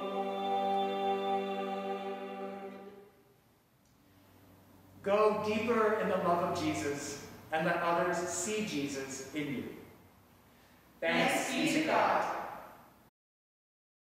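A small mixed choir sings together in a large, echoing hall.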